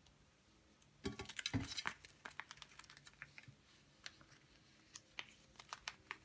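Thin plastic crinkles and rustles under fingers.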